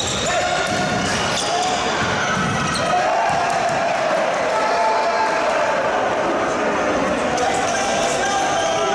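Sports shoes squeak on a court floor in an echoing indoor hall.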